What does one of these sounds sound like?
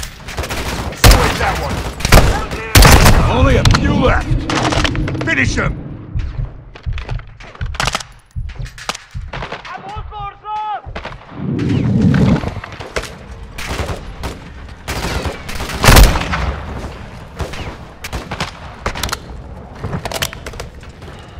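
Rifle shots bang loudly again and again.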